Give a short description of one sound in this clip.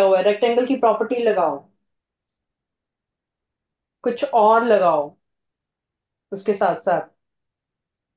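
A woman speaks calmly, as if teaching, through a microphone.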